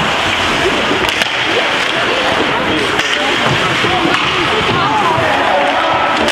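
Spectators shout and cheer loudly in an echoing rink.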